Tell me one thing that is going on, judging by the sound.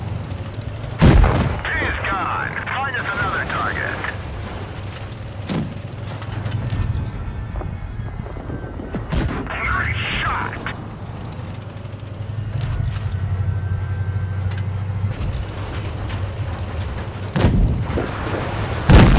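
Tank guns fire with loud booming blasts.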